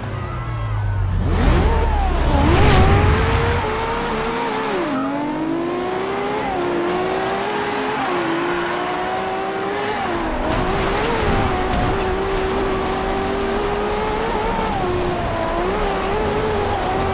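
A racing car engine roars and rises in pitch through its gears.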